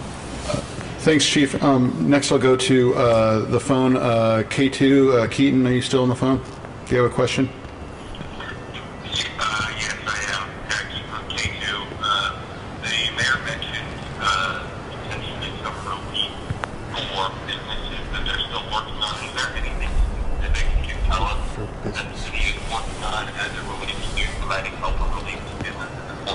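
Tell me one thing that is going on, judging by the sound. An elderly man speaks calmly into a microphone in an echoing hall.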